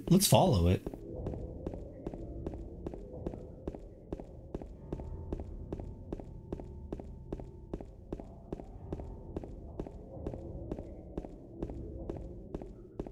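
Quick footsteps run steadily on pavement.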